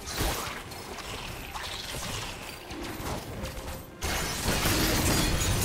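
Magical combat effects whoosh and crackle in a video game.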